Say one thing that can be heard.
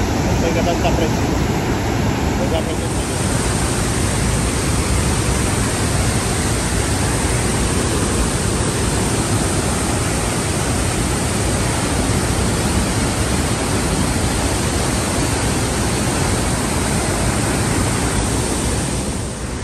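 A waterfall roars loudly close by.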